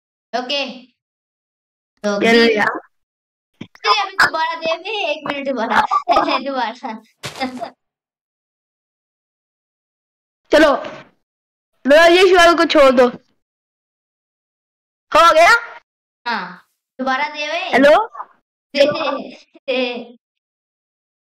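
A teenage boy talks with animation close to a headset microphone, in bursts.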